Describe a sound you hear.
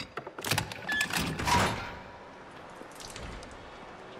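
A metal door bangs open.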